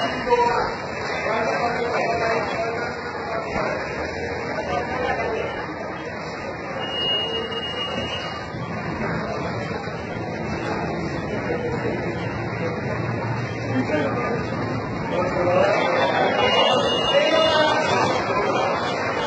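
Footsteps hurry across a hard floor.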